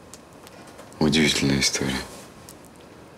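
A young man speaks softly and close by.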